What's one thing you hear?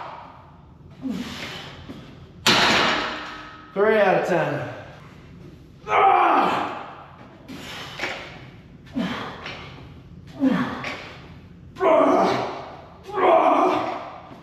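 Barbell plates clank and rattle with each lift.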